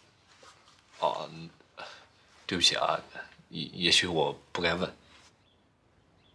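A young man speaks calmly and hesitantly, close by.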